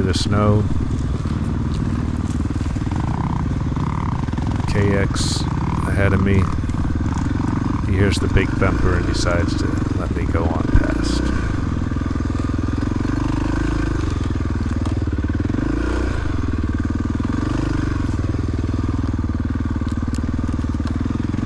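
A dirt bike engine revs and putters up close.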